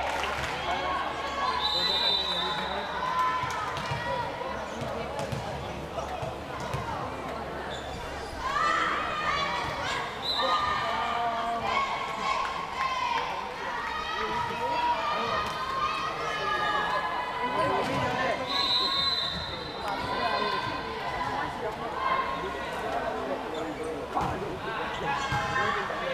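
Young women shout and call out to each other across an echoing hall.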